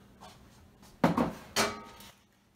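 Utensils clatter against a pan.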